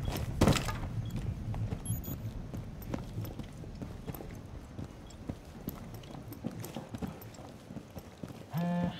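Footsteps thud steadily on a hard floor indoors.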